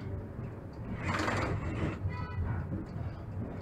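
Tram wheels squeal and clatter over points.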